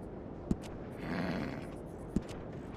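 A horse snorts softly.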